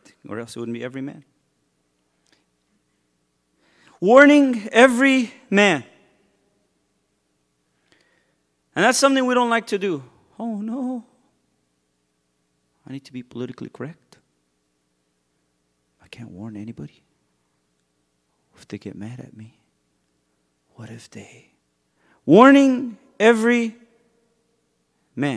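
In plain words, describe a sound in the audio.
A man speaks with animation into a microphone, in short phrases with pauses.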